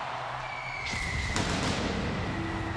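Pyrotechnics burst with a loud whooshing blast.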